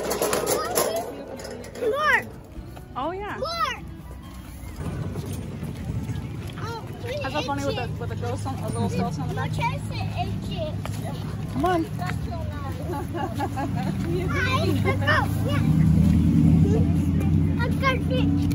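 A small boy talks and babbles close by.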